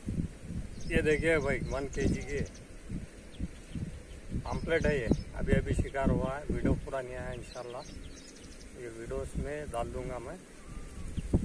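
A man speaks close by, calmly and with some animation.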